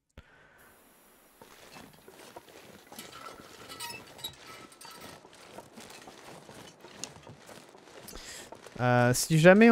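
Footsteps crunch through snow.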